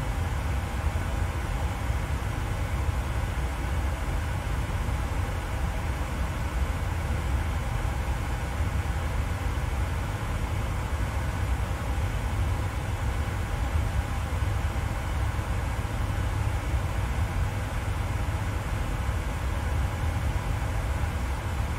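Jet engines drone with a steady low rumble.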